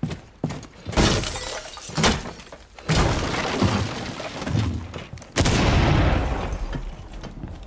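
Loud explosions boom and crack, echoing off walls.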